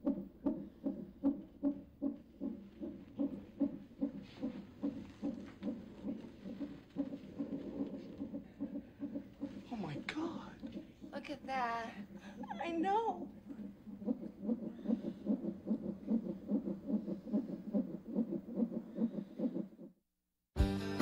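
A fast heartbeat pulses steadily from a monitor.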